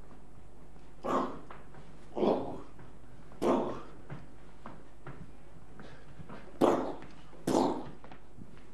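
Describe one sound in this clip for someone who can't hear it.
A man lets out short, loud shouts.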